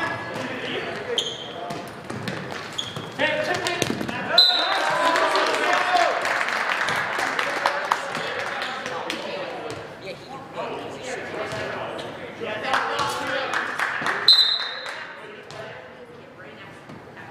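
Teenage boys shout and call out to each other in an echoing hall.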